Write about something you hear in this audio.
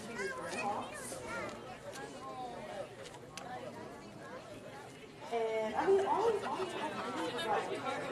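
Young men and women shout and cheer from a distance across an open field.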